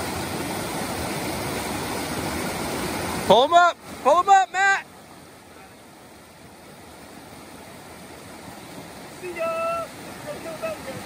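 A shallow stream rushes and gurgles over rocks.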